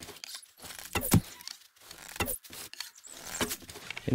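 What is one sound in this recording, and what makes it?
A bowstring snaps as an arrow is shot.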